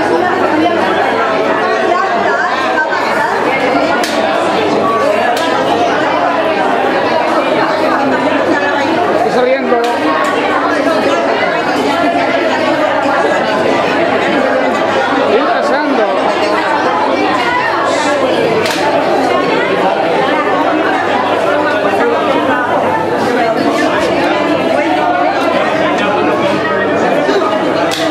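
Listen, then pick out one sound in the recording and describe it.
A crowd of men and women chatters loudly all around, close by.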